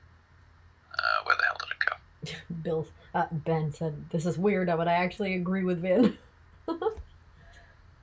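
A woman talks playfully close by.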